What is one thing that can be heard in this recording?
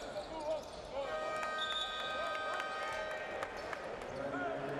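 A referee's whistle blows.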